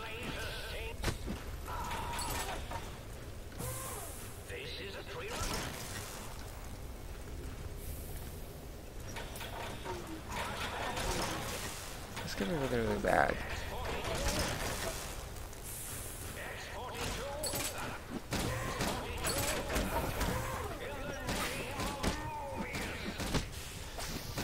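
A giant robot scorpion clanks and whirs with metallic mechanical noise.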